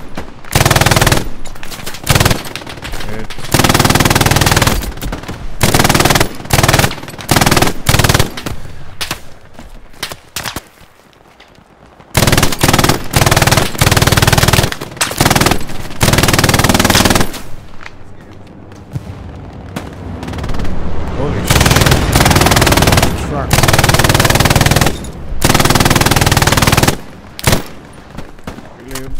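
A heavy machine gun fires in long, loud bursts.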